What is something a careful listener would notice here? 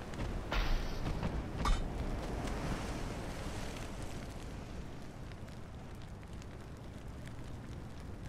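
Heavy guns fire with loud booming blasts.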